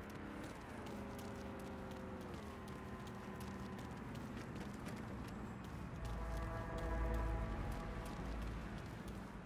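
Footsteps tread softly on pavement.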